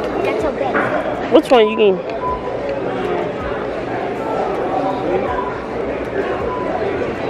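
Shoppers chatter in the background of a busy indoor space.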